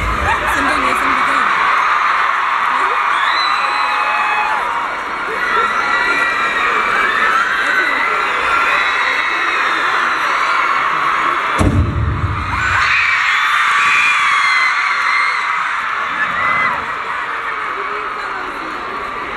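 A large crowd screams and cheers loudly in a huge echoing arena.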